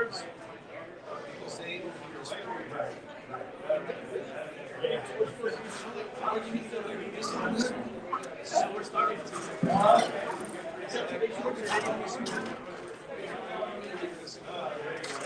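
Many voices murmur in a busy room.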